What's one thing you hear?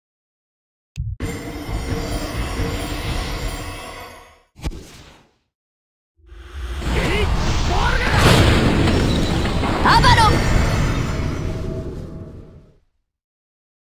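Magic spells whoosh and crackle loudly in bursts.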